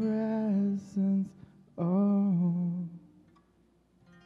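A man sings through a microphone in an echoing hall.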